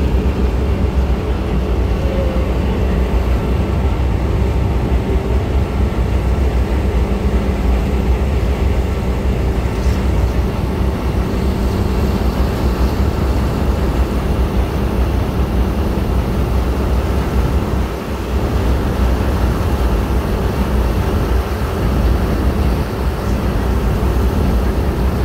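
A boat engine drones steadily.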